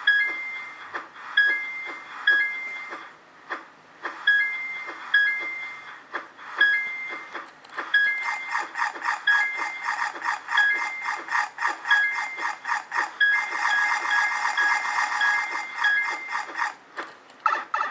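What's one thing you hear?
A phone game plays short chiming beeps through a small speaker.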